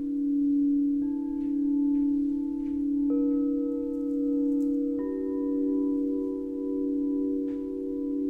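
Crystal singing bowls ring with long, steady humming tones, new notes joining one after another.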